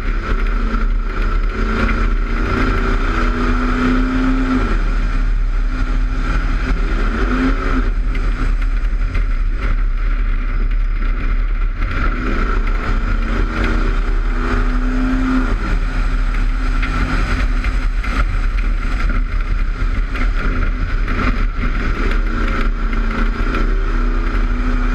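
Wind buffets hard against the car.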